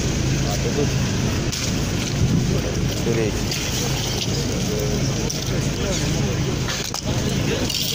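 Several men talk nearby, with voices overlapping.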